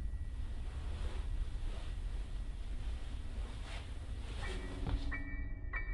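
Footsteps thud on creaking wooden stairs and floorboards.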